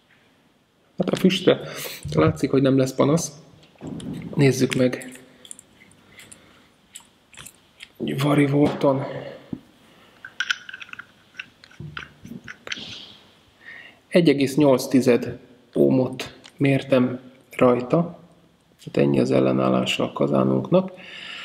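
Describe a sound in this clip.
A man talks calmly and closely.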